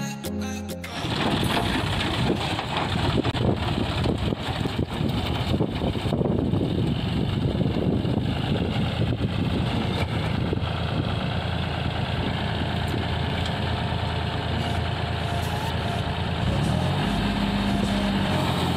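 A rotary tiller churns through wet soil.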